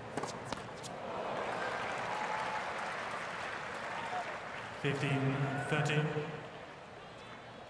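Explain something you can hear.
A large crowd claps and cheers outdoors.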